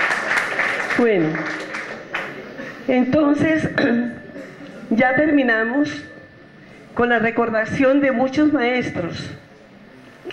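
An older woman speaks through a microphone over loudspeakers.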